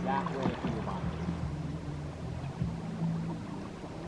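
A paddle splashes softly in calm water.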